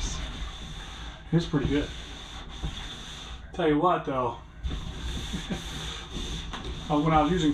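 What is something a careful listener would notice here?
A scouring pad scrubs across a ridged metal floor.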